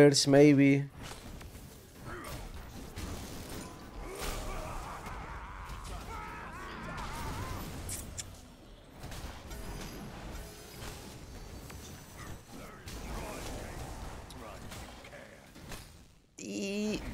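Weapons clash and spells burst in a busy video game battle.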